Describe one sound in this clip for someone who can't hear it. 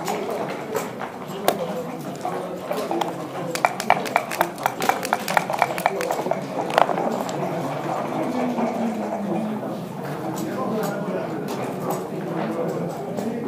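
Game checkers click against each other as they are moved.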